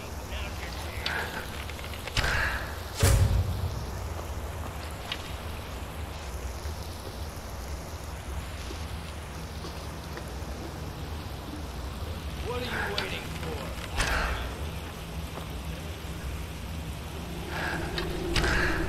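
A man talks calmly.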